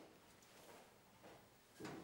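A cupboard door bumps open.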